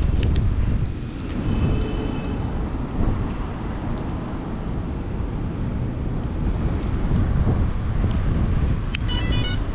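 Hands click and fiddle with small plastic parts close by.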